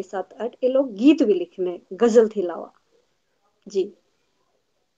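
A young woman speaks with animation over an online call.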